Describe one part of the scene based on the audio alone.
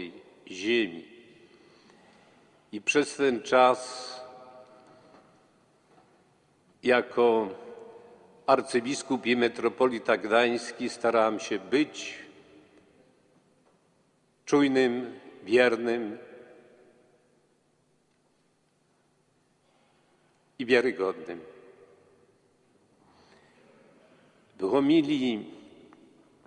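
An elderly man speaks slowly and solemnly into a microphone in a large echoing hall, with long pauses.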